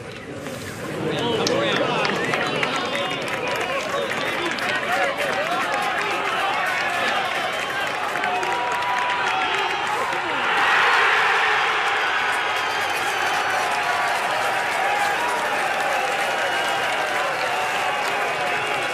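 A large outdoor crowd cheers and roars, swelling loudly.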